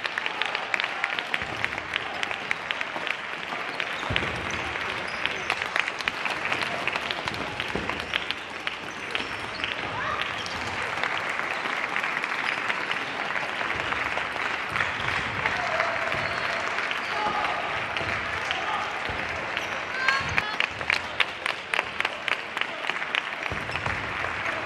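Table tennis balls click against paddles and tables in a large echoing hall.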